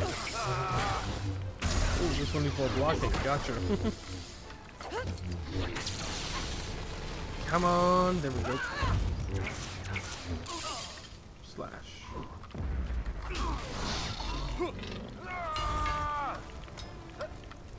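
Lightsabers hum and clash in a fight.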